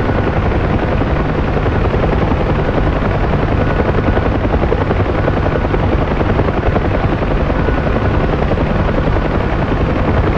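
A helicopter's rotor and engine roar steadily and throb.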